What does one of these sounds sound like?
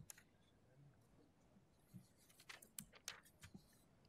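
Paper rustles on a table.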